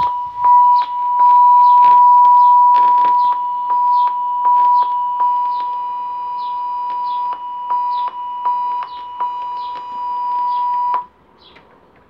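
A steady high beep tone plays from a television speaker.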